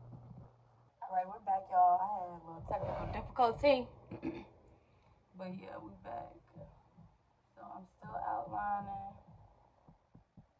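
A young woman talks casually, close up.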